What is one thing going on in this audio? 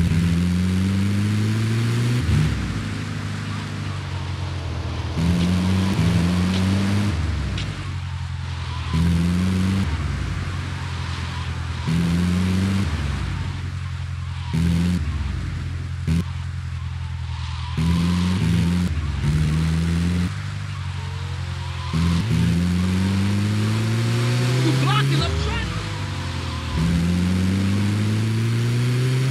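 A van's engine hums and revs up and down as it drives, shifting gears.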